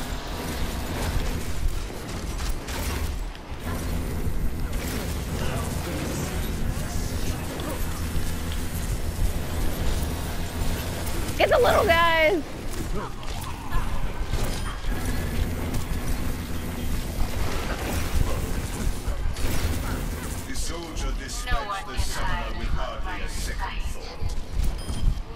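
Explosions and impacts thump in a game battle.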